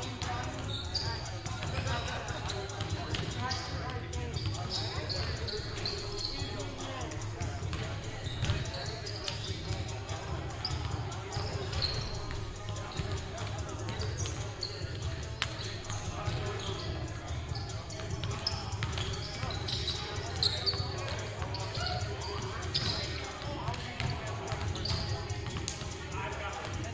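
Voices of players echo through a large gym.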